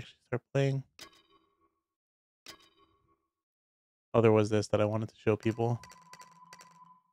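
Short electronic blips sound now and then.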